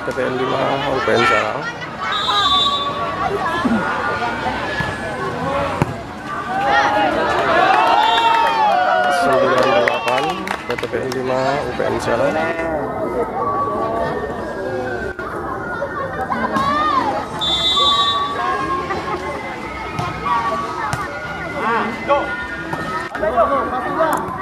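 A volleyball smacks against players' hands and arms.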